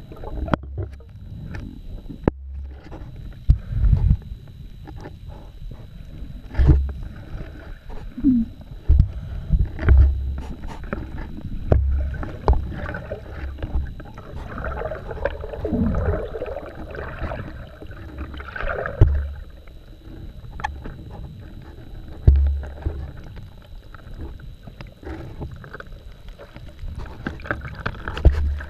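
Diving gear bumps and knocks dully underwater.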